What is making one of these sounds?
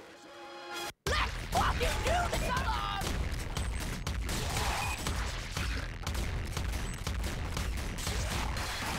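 Rapid shooting and explosion sounds crackle from a video game.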